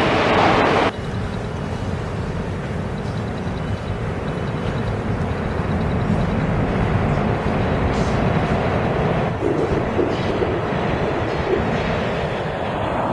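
A subway train rumbles as it approaches through a tunnel.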